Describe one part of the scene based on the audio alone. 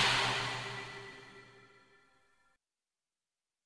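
A shimmering magical tone rings out and slowly fades away.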